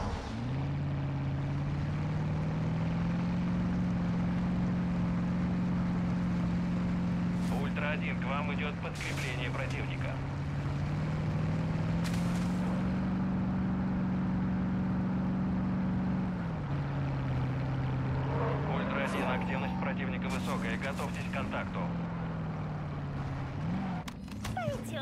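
A vehicle engine drones steadily, rising and dropping in pitch as gears change.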